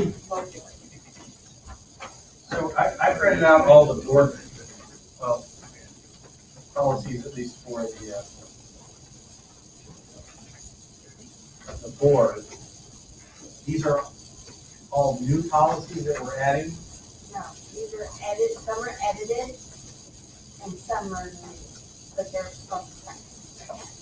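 A man speaks calmly through a microphone, heard from a distance.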